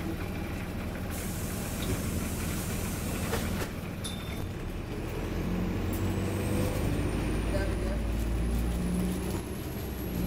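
A bus engine rumbles low and steady while the bus drives along.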